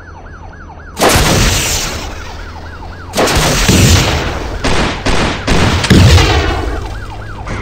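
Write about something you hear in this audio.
Explosions boom loudly, one after another.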